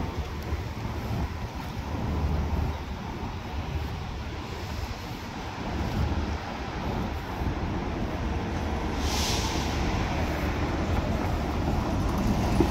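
Footsteps tap on pavement close by.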